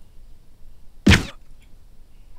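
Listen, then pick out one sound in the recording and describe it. A gunshot cracks once, close by.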